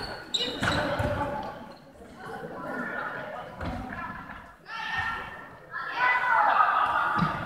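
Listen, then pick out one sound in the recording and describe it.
Young players shout and call out in a large echoing hall.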